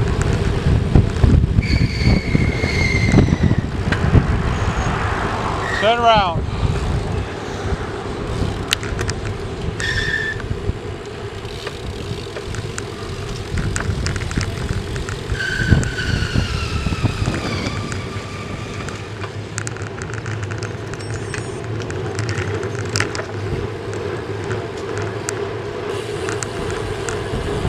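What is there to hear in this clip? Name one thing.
Wind rumbles and buffets against the microphone while riding outdoors.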